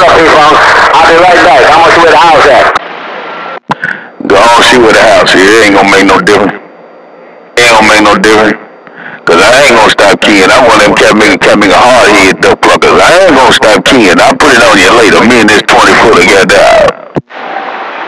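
A radio plays loud, harsh sound through its speaker.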